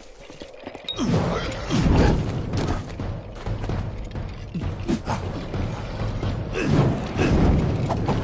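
Fiery magic blasts roar and crackle in a fight.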